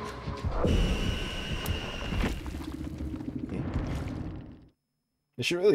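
Video game music and effects play.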